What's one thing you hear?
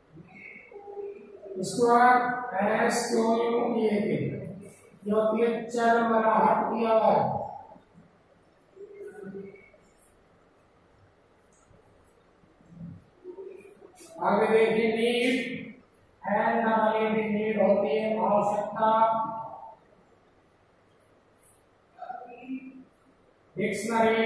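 A man speaks clearly nearby, reading out in a measured voice.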